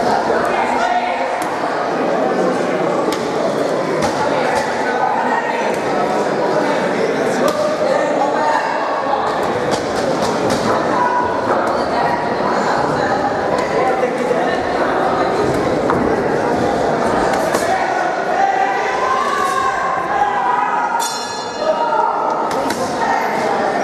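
A crowd chatters and calls out steadily in an echoing hall.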